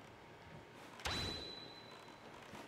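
A sail snaps open with a whoosh.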